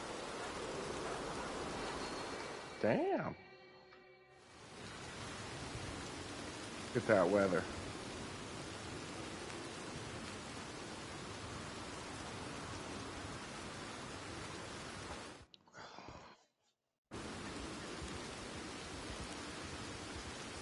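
Wind blows steadily across open grassland.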